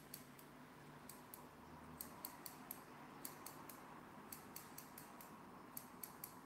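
Scissors snip hair in quick, crisp clicks close by.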